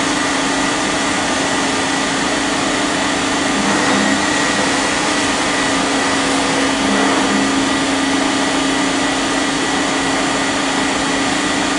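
A machine hums steadily with a loud whirring drone.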